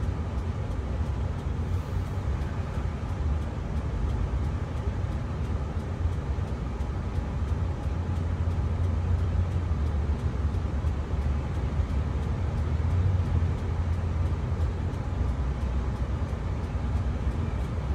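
A bus engine rumbles low and steadily from inside the cabin.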